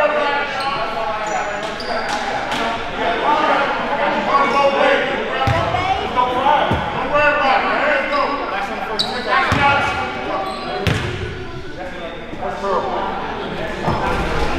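Men talk and call out to each other across the gym.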